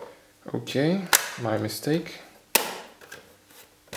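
The lid of a cassette player snaps shut.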